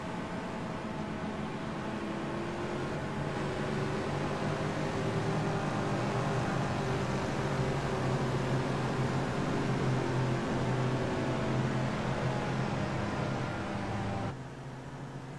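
Racing car engines roar steadily at high revs.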